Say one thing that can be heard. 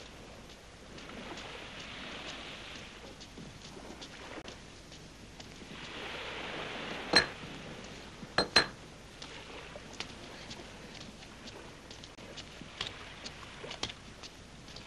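Waves wash onto a rocky shore.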